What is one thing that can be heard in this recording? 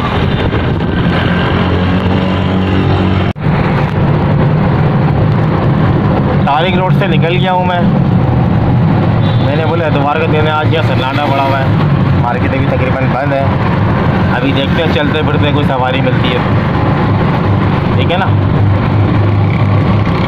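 An auto-rickshaw engine rattles and drones steadily while driving.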